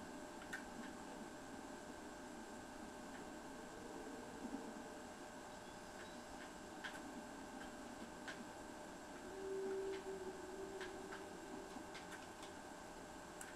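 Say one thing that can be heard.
Soft footsteps tap on a hard floor.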